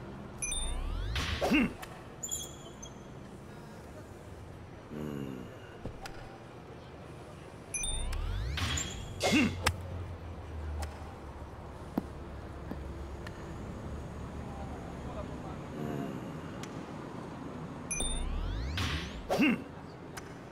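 A golf club swishes through the air.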